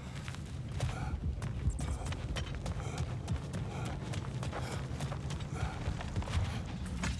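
Heavy footsteps crunch steadily on dirt and gravel.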